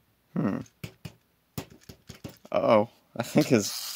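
A wind-up toy's key clicks as it is wound.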